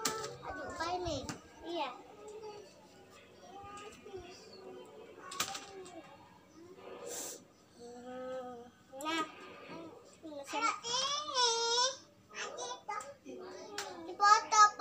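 A young girl talks close by in a lively voice.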